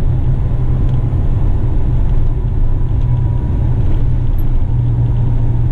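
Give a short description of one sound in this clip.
Tyres roll along the road.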